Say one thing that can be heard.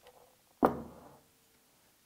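A heavy case knocks down onto a table.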